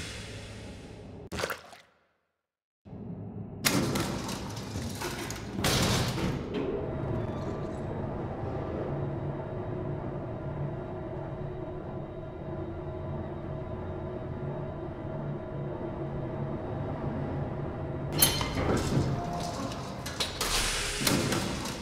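Heavy mechanical buttons clunk as they are pressed on a panel.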